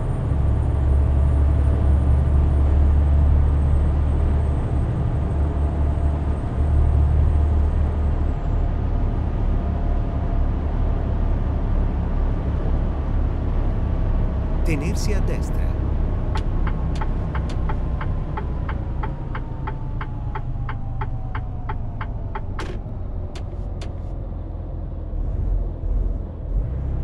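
A truck engine hums low and steady while driving.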